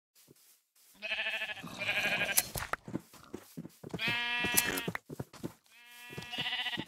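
Sheep bleat nearby, one after another.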